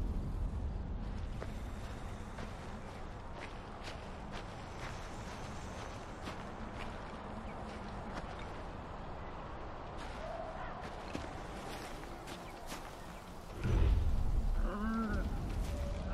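Footsteps rustle through tall grass at a steady walking pace.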